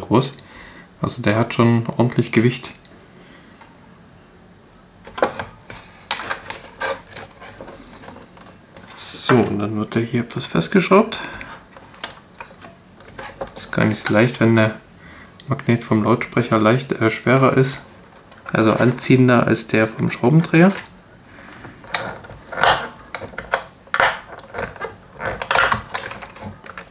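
Hard plastic parts click and rattle close by.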